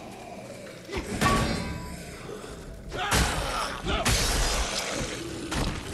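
A sword slashes and strikes flesh.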